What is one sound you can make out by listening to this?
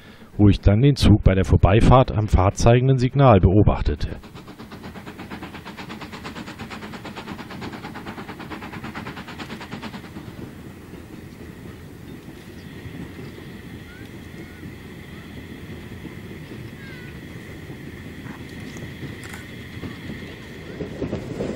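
A steam locomotive chugs steadily in the distance.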